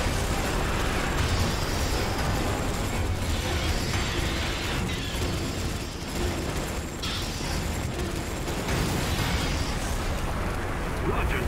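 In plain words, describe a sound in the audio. Flames roar from a flamethrower.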